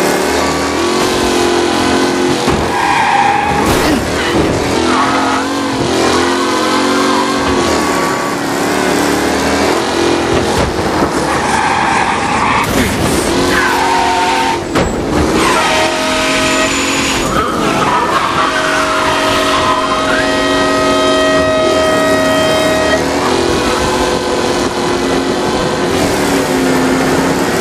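A car engine roars as a car speeds along.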